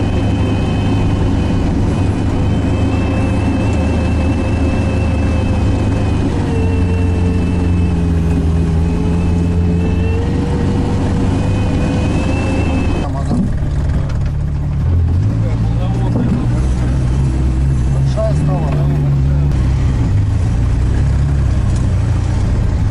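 A heavy machine's engine rumbles steadily up close, with its pitch shifting now and then.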